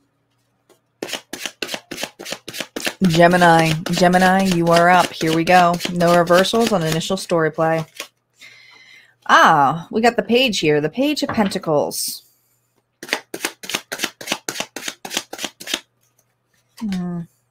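Tarot cards riffle and slap softly as they are shuffled.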